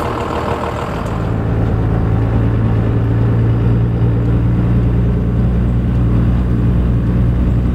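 A bus engine roars as the bus drives off.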